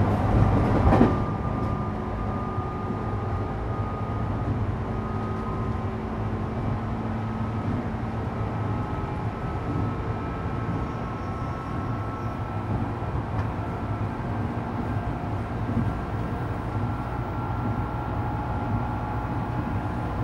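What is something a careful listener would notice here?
A train's electric motors hum steadily with a low rumble.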